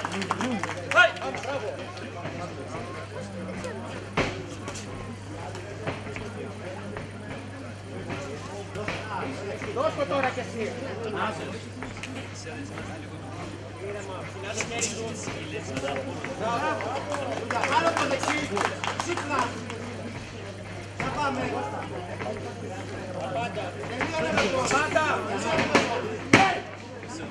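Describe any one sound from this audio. Punches and kicks thud against the fighters' bodies.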